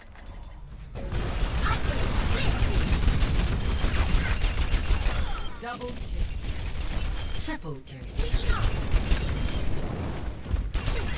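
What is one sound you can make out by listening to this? Rapid automatic gunfire rattles in a video game.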